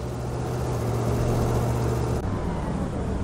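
A bus engine rumbles and drives away.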